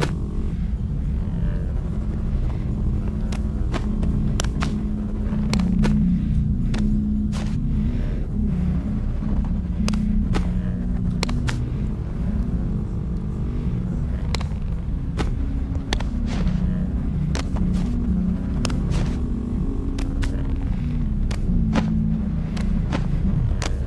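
Hands tap and knock against metal pipes.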